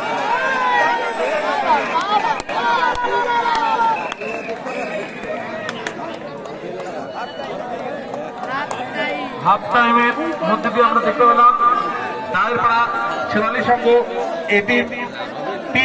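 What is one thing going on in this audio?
Young men shout loudly close by.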